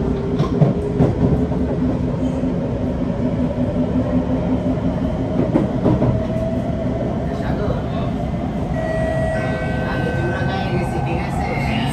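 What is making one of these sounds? A metro train rumbles steadily along its tracks, heard from inside.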